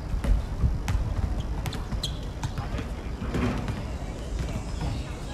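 Sneakers squeak on a hard court outdoors.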